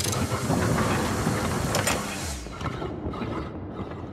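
A heavy desk clatters and crashes as it is wrenched aside.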